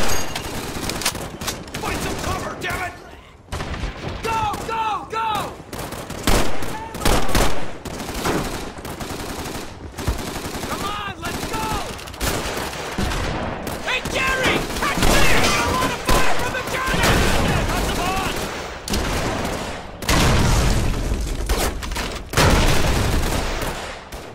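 Rifle shots crack rapidly and loudly.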